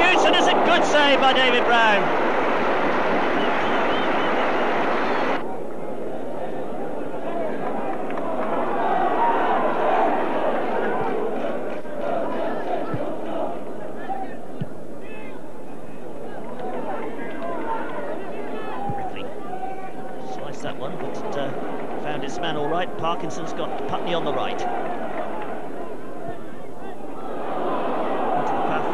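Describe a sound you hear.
A large stadium crowd cheers and chants throughout.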